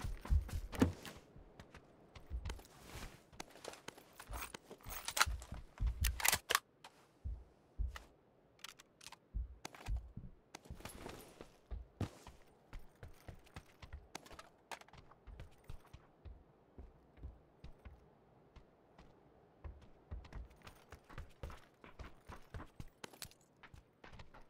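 Footsteps thud on wooden floors.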